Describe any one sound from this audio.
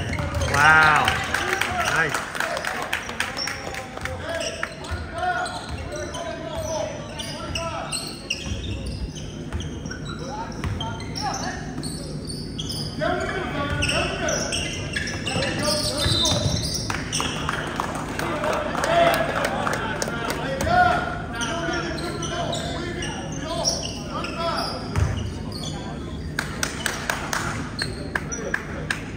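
Spectators chatter and call out in an echoing gym.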